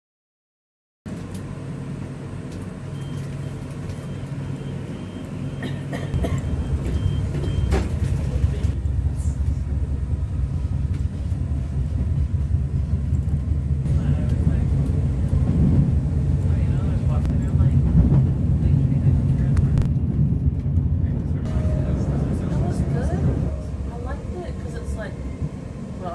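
A train hums and rumbles steadily along the tracks, growing louder as it picks up speed.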